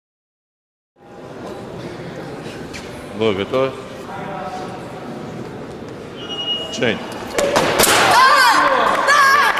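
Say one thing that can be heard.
Fencers' shoes thud and squeak on the floor in a large echoing hall.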